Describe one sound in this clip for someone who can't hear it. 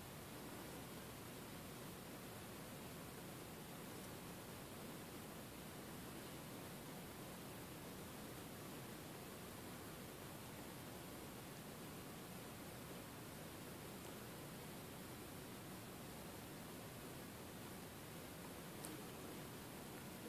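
Fingers tap lightly on a phone's touchscreen.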